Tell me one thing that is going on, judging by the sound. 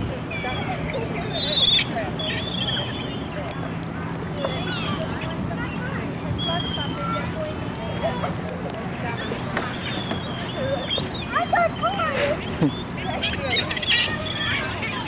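People chatter outdoors in the background.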